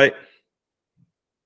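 A young man says a brief word over an online call.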